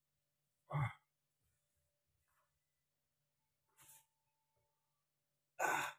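A young man groans loudly in discomfort close by.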